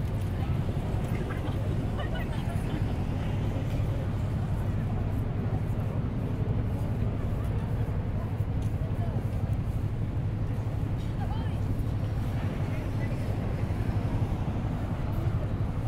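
Steady wind rumbles against the microphone outdoors.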